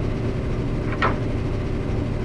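A large metal lever clanks into place.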